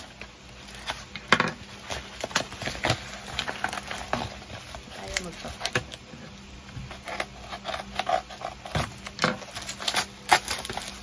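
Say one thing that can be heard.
Paper and foil packaging crinkles and rustles close by.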